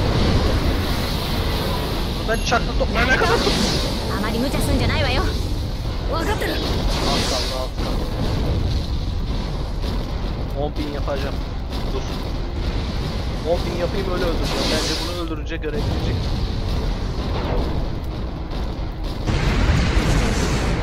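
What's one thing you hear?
Game explosions and blasts rumble and crash.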